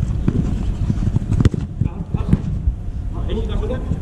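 A football is kicked.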